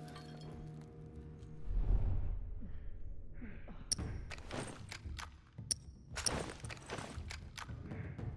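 Clothing rustles as someone crouches and shifts.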